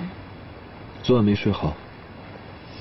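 A young man asks a question calmly.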